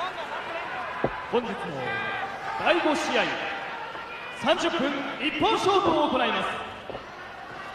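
Men in the crowd shout loudly.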